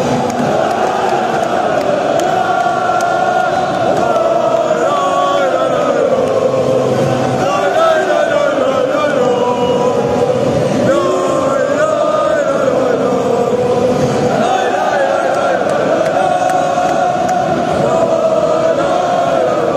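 A huge crowd of fans chants and sings loudly in unison in a large echoing stadium.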